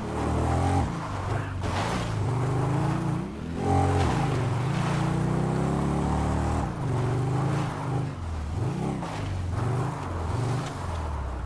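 Tyres crunch over rocky gravel.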